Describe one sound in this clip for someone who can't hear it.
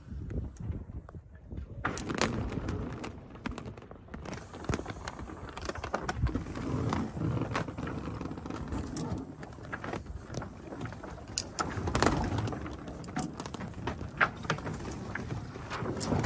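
Sails and rigging flap and knock.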